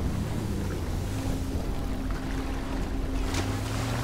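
Water splashes and churns.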